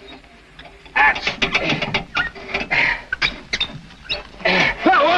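A man knocks and clatters wooden objects close by.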